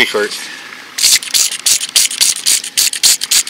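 A spray bottle squirts in short bursts.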